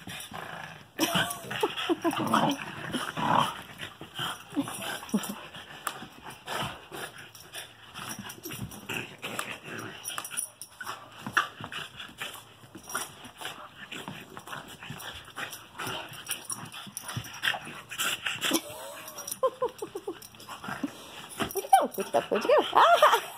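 Two dogs growl and snarl as they play-fight.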